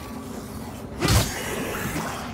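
A sword strikes with a heavy thud.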